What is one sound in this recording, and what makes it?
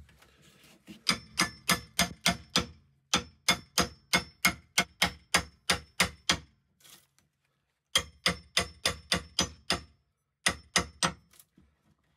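A hand tool clicks in quick, even ratcheting clicks.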